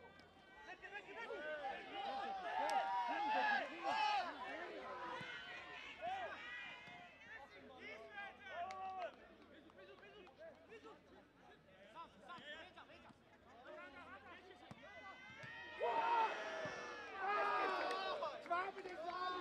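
Men shout to one another across a football pitch.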